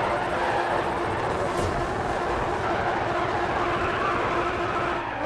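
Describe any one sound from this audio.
A race car engine roars at high revs.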